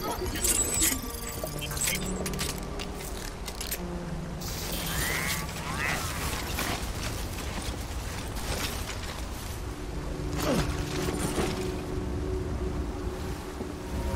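A character's boots scrape and shuffle on rock while climbing.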